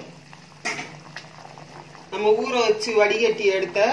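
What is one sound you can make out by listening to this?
A pot of sauce bubbles and simmers.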